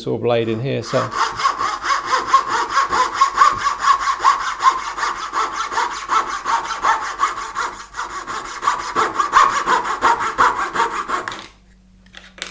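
A fine hand saw cuts rapidly through wood.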